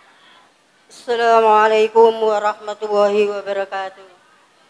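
A man chants loudly through a loudspeaker.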